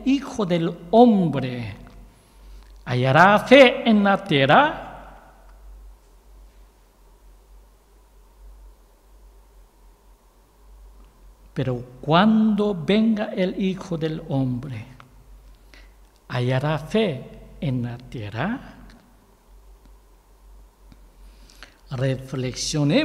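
A man reads aloud calmly into a microphone, with pauses between phrases.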